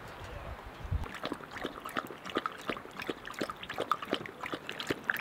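A dog laps water quickly from a bowl.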